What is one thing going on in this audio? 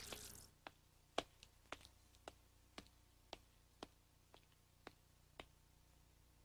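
Light footsteps tap at an even pace.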